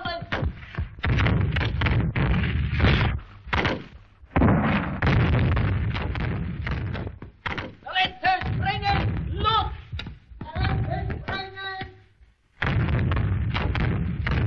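Explosions boom and rumble nearby.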